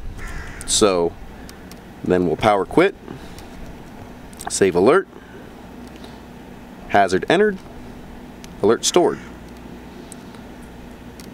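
Buttons on a handheld device click softly as a finger presses them.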